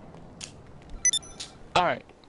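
A keypad beeps as its buttons are pressed.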